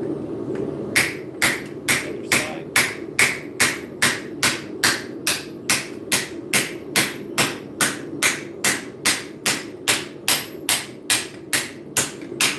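A hammer strikes metal on an anvil in a quick, steady rhythm of ringing blows.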